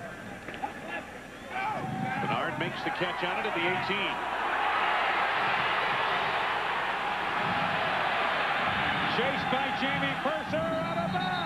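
A large crowd cheers and roars, swelling loudly.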